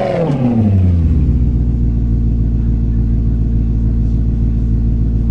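A car engine drops to a low, steady idle.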